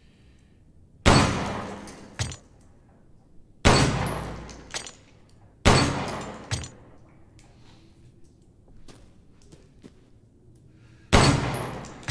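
Pistol shots ring out one at a time and echo through a cave.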